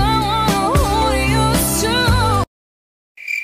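A woman sings with a bright voice.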